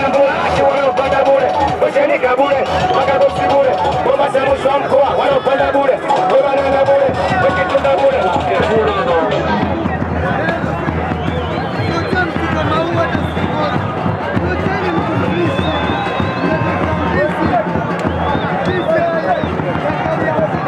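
A large crowd chatters and shouts all around.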